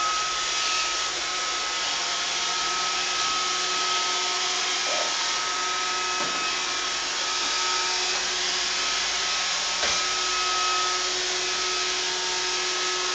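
A robot vacuum cleaner hums and whirs steadily as it moves across a hard floor.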